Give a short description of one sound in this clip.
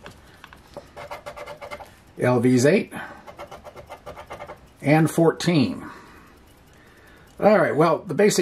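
A coin scrapes rapidly across a scratch card.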